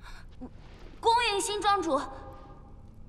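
A young woman speaks out with emotion, close by.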